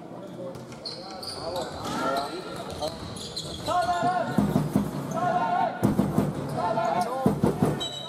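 Sneakers squeak on a hard floor as players run.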